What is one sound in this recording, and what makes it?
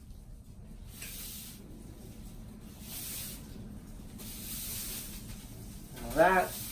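A broom sweeps across a hard floor.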